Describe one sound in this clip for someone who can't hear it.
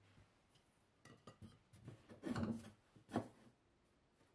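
An MDF board knocks against a window frame.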